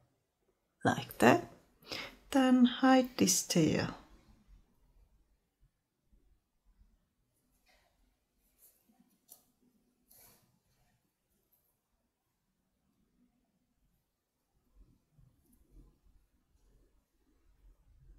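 Yarn rustles softly as a needle is drawn through knitted fabric.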